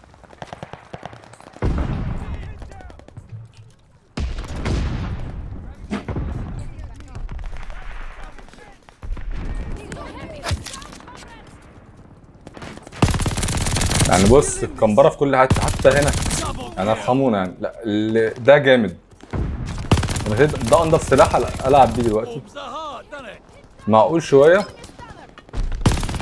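Gunfire and explosions boom from a game.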